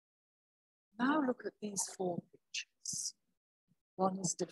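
An elderly woman speaks calmly, heard through an online call.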